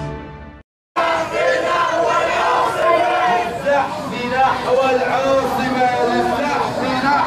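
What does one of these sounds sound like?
A crowd of men chants loudly in unison outdoors.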